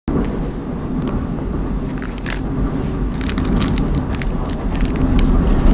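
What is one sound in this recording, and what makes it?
Plastic packets crinkle and rustle as they are handled.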